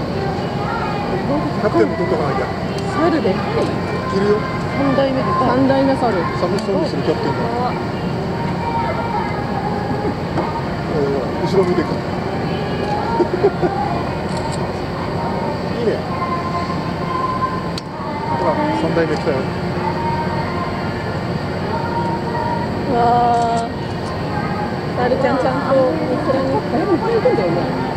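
Several adults chat with animation close by outdoors.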